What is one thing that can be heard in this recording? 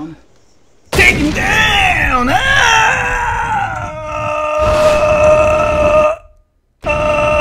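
A bullet whooshes through the air in slow motion.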